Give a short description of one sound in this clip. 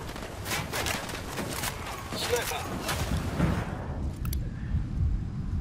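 Footsteps rustle through undergrowth.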